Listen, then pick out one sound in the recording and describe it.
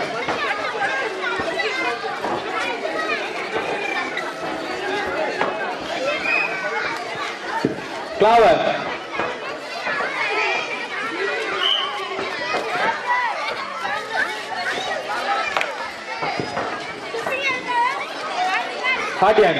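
Children shout and call out excitedly.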